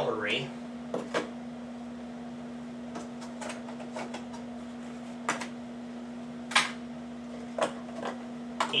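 Dishes knock and clatter on a countertop.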